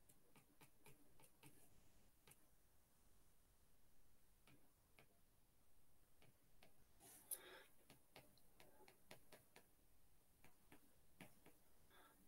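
A stylus taps and scratches softly on a tablet.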